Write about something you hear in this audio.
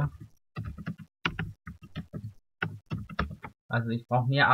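Keys clack quickly on a computer keyboard.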